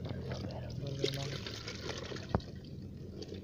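Water pours from a plastic bottle into a bucket.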